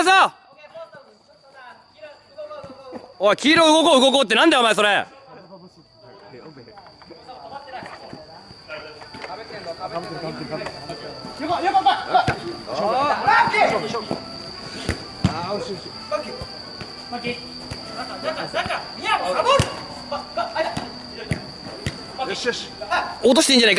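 A futsal ball thuds off a foot when kicked.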